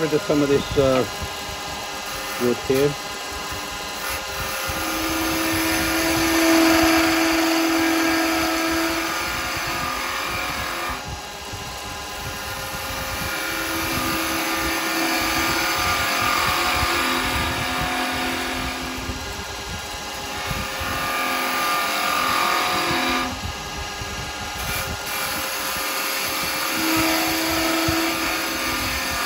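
A lathe hums steadily as it spins.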